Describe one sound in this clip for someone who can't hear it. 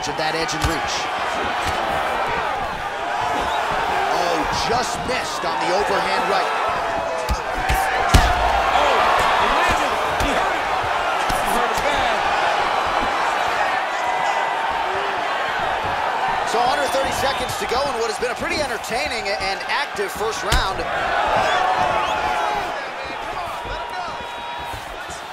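A large crowd roars steadily in an arena.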